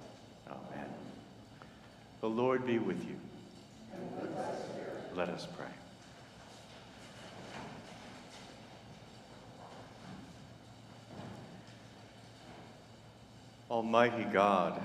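A man chants through a microphone in a large echoing hall.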